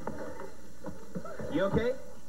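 Young men talk with animation close by.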